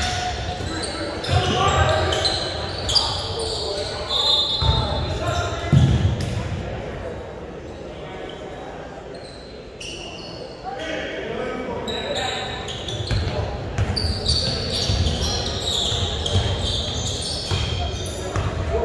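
A ball bounces on a wooden court in a large echoing gym.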